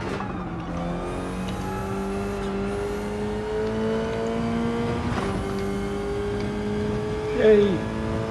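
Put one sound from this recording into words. A race car engine roars steadily, rising in pitch as it revs and dropping at each gear change.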